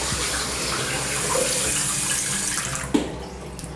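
Water runs from a tap in a steady stream.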